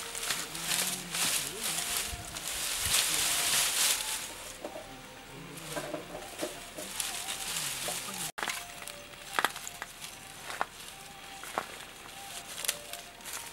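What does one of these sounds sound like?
Long sticks clatter and scrape over dry leaves.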